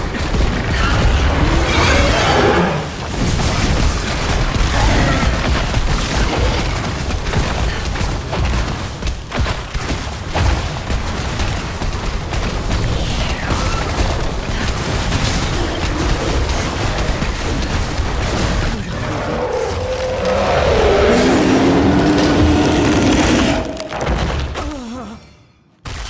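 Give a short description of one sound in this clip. Magic spells crackle and blast in a fast, busy fight.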